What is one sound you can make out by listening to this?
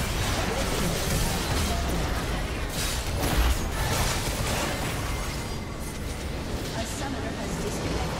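Magic spells blast and crackle in a fast, chaotic fight.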